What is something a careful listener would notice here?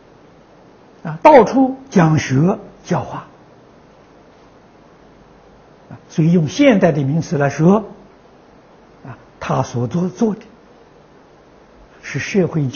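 An elderly man speaks calmly into a microphone, close by, in short phrases with pauses.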